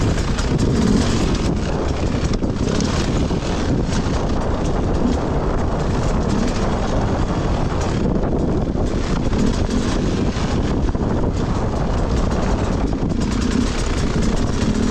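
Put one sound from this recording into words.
Tyres crunch and scrabble over loose rocks.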